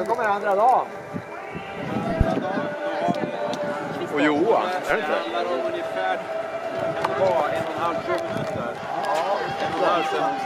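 A small outdoor crowd of men and women cheers and calls out.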